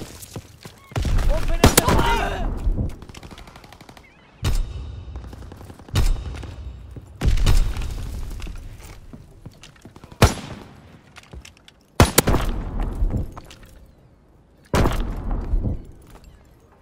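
A rifle fires in loud bursts of shots.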